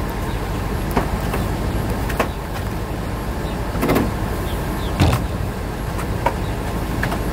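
A rope rattles and knocks against a metal trailer.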